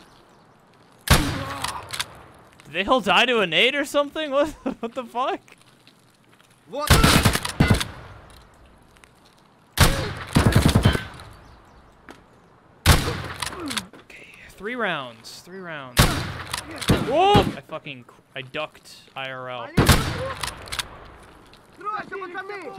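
A shotgun's pump action clacks between shots.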